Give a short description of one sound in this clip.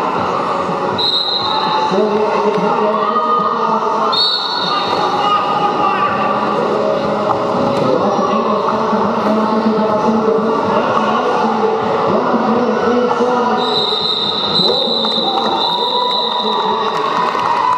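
A referee blows a shrill whistle.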